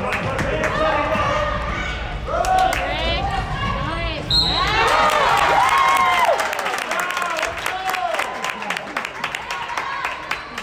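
Spectators shout and cheer from the sideline.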